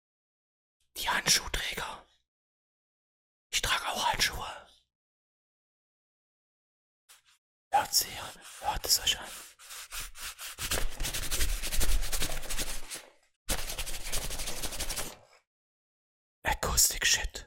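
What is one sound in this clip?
A young man speaks with animation close to a microphone, in short bursts between silences.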